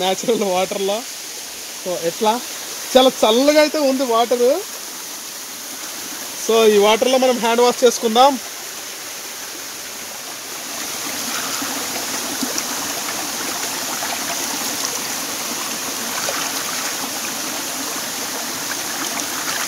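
Water trickles and splashes over rocks.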